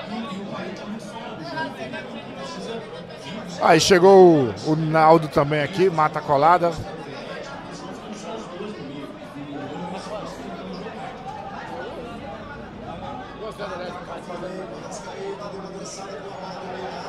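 A crowd of men murmurs and chatters in the background.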